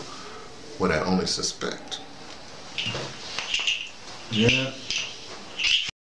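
A middle-aged man speaks calmly, close to the microphone.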